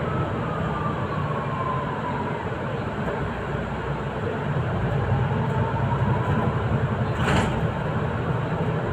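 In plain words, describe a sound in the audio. Tyres roll on the road with a steady rushing noise.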